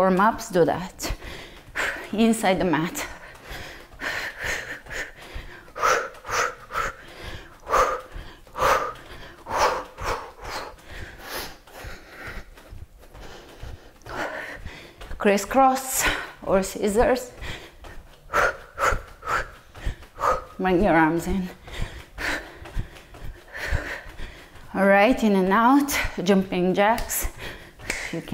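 A woman speaks with animation into a close microphone.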